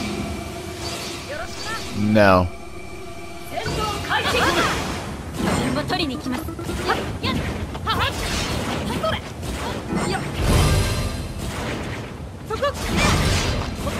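Blades swish and clash in a fast fight.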